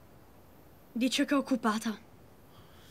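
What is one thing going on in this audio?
A boy speaks nearby in a calm voice.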